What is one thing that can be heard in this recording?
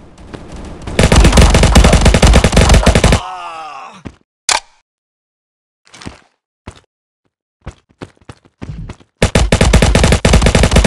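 A rifle fires loud rapid bursts.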